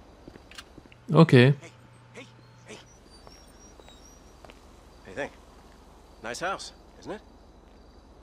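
A man calls out and talks at close range.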